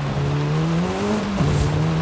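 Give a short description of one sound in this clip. Car tyres crunch on gravel.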